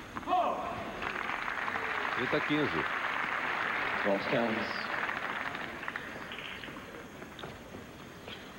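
A crowd applauds loudly, then the clapping fades.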